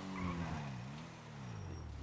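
Tyres screech on the road.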